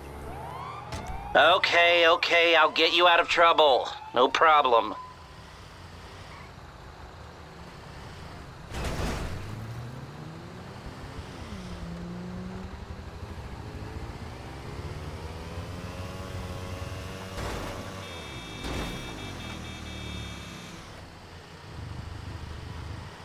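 A heavy truck engine hums and revs as the truck drives along.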